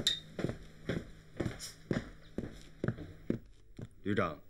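Boots step firmly on a hard floor.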